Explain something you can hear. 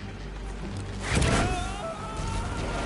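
A recovery balloon whooshes as it yanks a body up into the air.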